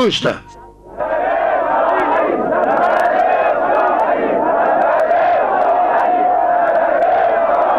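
A large crowd murmurs and cries out together.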